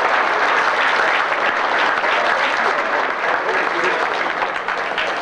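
An elderly man laughs into a microphone.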